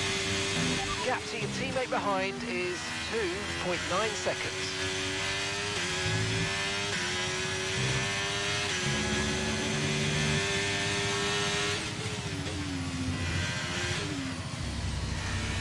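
A racing car engine drops in pitch as the car brakes hard.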